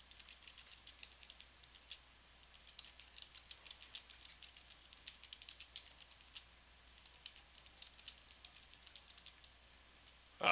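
Keys on a keyboard click in quick, light taps.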